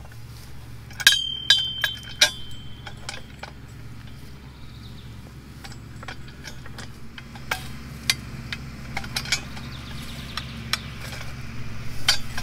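A metal tool clanks against a steel fence post.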